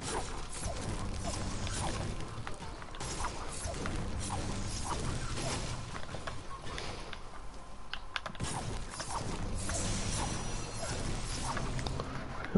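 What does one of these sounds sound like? A pickaxe strikes wood and brick again and again.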